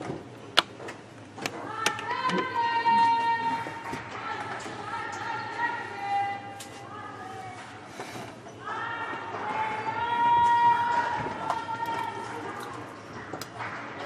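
A volleyball is struck with sharp thumps in a large echoing hall.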